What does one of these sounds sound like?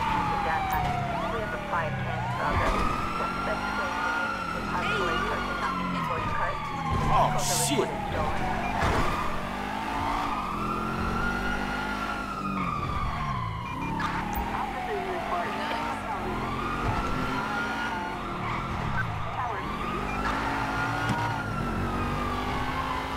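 A car engine roars and revs up and down through the gears.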